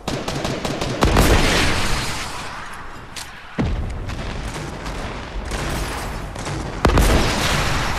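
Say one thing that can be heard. A rocket launcher fires with a loud boom.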